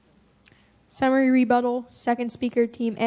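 A young woman speaks clearly into a microphone in a large room.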